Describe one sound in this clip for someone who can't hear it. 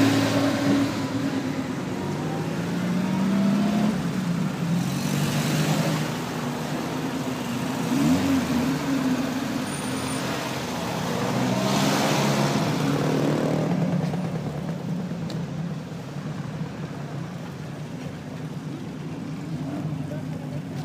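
Car engines idle and rumble nearby outdoors.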